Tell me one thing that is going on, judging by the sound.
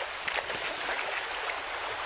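A fishing line lands on the water with a light splash.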